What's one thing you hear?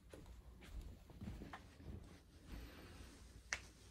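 Footsteps walk away across the room.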